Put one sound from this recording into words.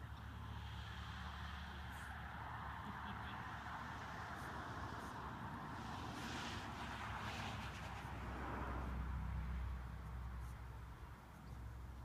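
Footsteps brush softly through damp grass.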